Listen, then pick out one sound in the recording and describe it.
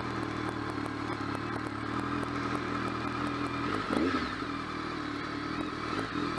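A motorcycle engine idles steadily close by, with a brief rise in pitch.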